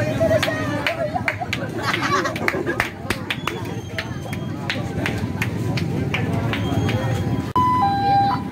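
A crowd of young people chatters and shouts close by outdoors.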